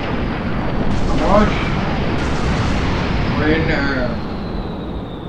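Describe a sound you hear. A man speaks with animation into a nearby microphone.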